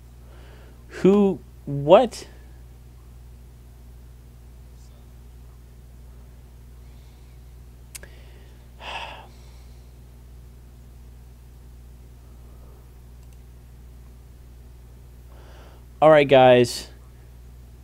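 A man speaks briefly and loudly into a close microphone, in short exclamations.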